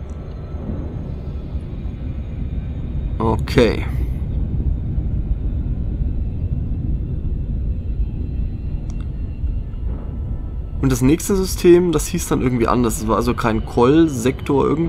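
A spacecraft engine hums with a low, steady rumble.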